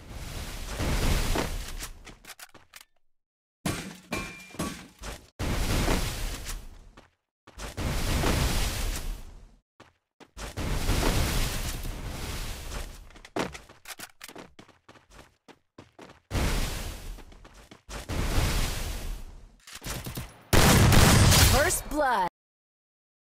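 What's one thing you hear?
Walls burst up from the ground with loud crunching whooshes, again and again.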